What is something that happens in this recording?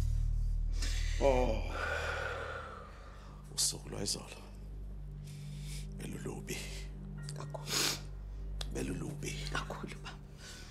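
An elderly man groans and speaks weakly.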